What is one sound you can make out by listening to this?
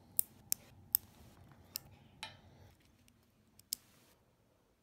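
Nail clippers snip with sharp clicks.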